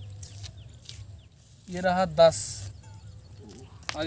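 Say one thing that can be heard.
Chalk scrapes on asphalt.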